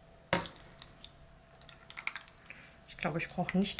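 Thick sauce glugs and plops out of a jar.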